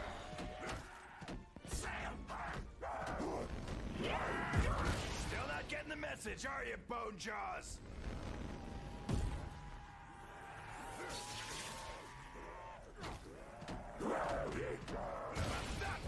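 Monsters growl and snarl close by.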